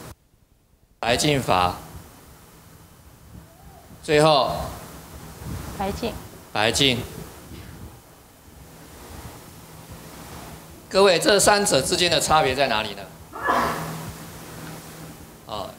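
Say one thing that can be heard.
A middle-aged man speaks calmly through a microphone in short phrases.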